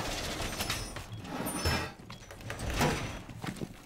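A hammer smashes through wooden boards with sharp cracks.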